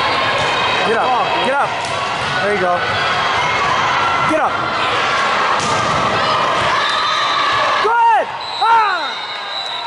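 Sneakers squeak on the hard court.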